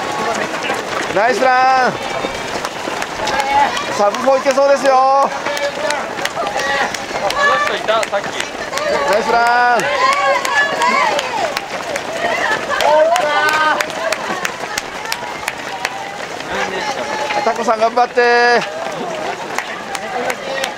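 A crowd of spectators cheers and shouts nearby, outdoors.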